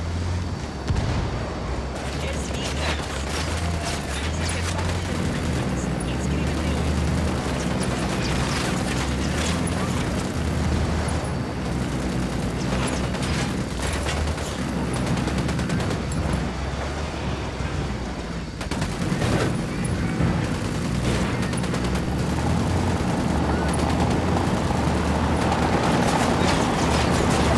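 A mounted machine gun fires in rapid bursts.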